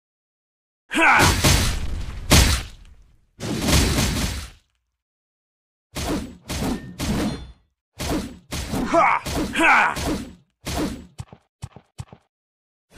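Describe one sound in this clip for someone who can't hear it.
Magic blasts burst and roar in a fight.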